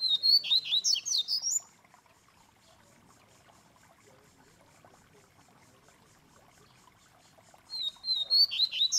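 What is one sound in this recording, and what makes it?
A caged songbird sings loud, quick trilling phrases close by.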